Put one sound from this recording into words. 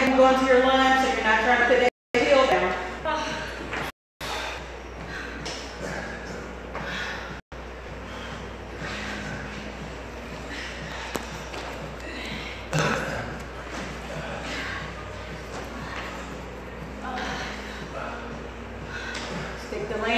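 Feet thump on a wooden floor during jumping exercises.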